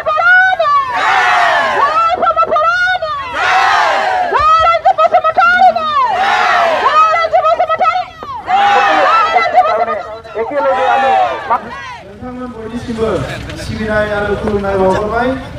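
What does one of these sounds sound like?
A crowd of women and men sings and chants loudly outdoors.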